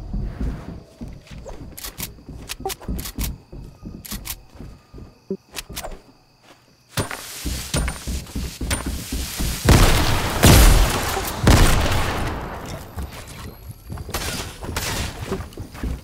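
Footsteps tap across a roof.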